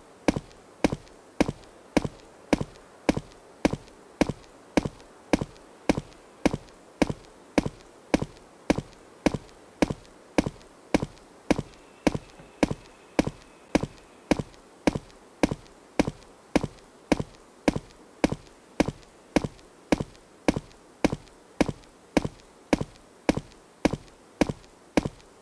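Footsteps tread steadily through grass.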